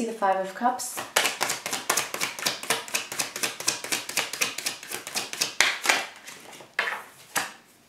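Cards are shuffled with a quick run of soft clicks.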